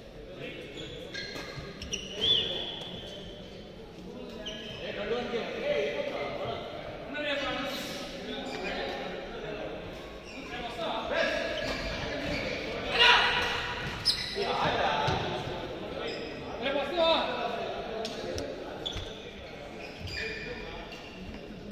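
Badminton rackets hit a shuttlecock with sharp pops.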